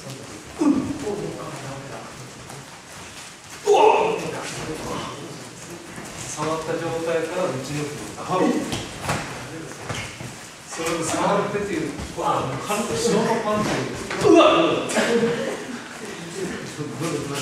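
A man speaks calmly, explaining.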